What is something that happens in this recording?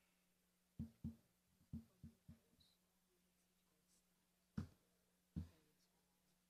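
Paper rustles and thumps near a microphone.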